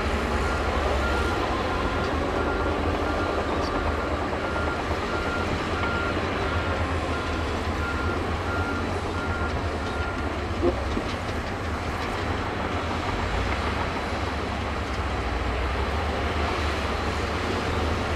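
Dirt and clods scrape and tumble in front of a bulldozer blade.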